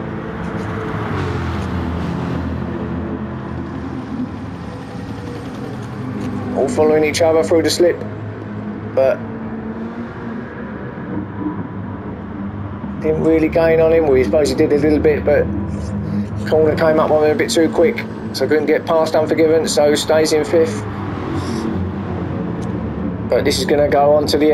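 Racing car engines roar and whine at high speed.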